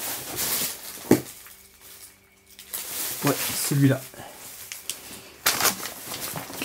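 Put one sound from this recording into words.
Plastic and paper rustle and clatter as a man rummages through a pile of things.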